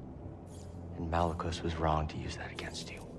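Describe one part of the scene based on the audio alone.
A young man speaks quietly and earnestly.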